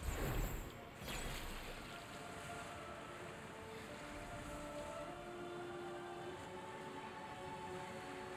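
Water splashes and sprays as something skims fast across it.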